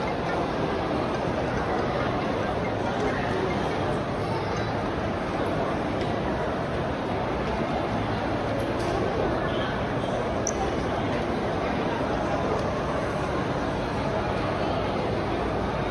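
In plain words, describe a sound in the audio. A steady murmur of many voices fills a large echoing hall.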